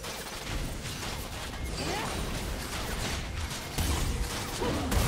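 Game attack impacts thud repeatedly.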